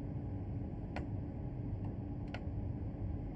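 A cab switch clicks twice.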